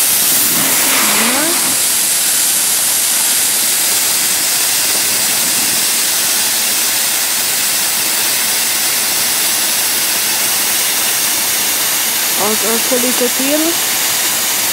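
A snowboard scrapes and hisses across snow.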